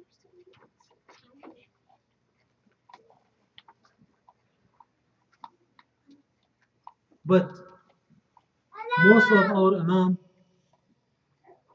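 An elderly man speaks and chants into a microphone, with loud drawn-out phrases.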